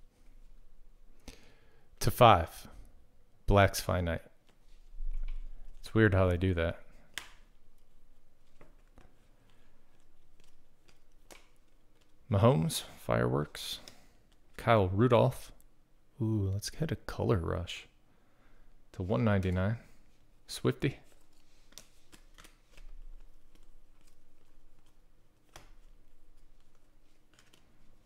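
Stiff trading cards rustle and flick softly as they are shuffled through by hand.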